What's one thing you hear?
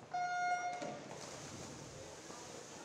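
Swimmers dive into the water and splash.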